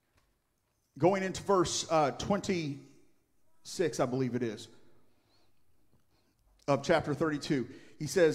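A middle-aged man speaks steadily through a microphone, with short pauses.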